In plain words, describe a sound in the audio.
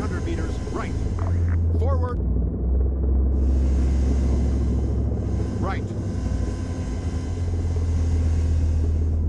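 A helicopter engine and rotor drone steadily and low.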